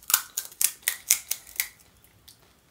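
A crisp hollow shell cracks and crackles close by.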